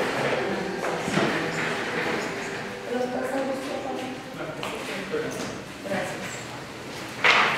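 A woman speaks calmly across a table.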